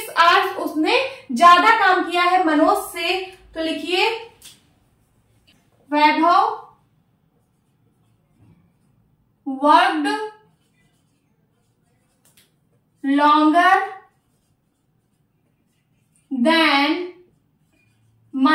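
A young woman speaks calmly and clearly close to a microphone, in short phrases with pauses.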